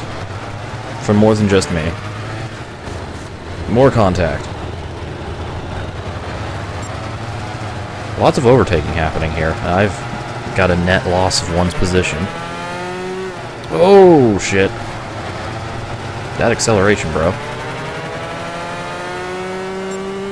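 Kart engines buzz and rev up and down, rising in pitch as they speed up.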